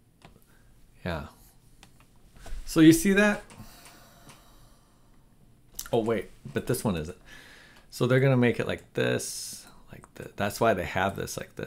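A middle-aged man speaks thoughtfully into a nearby microphone, with pauses.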